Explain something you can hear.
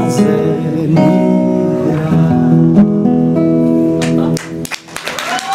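A guitar is strummed.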